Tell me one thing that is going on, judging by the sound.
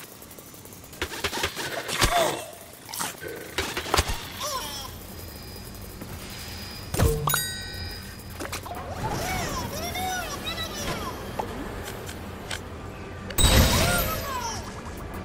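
Cartoonish whooshing effects burst out as a game character spins and attacks.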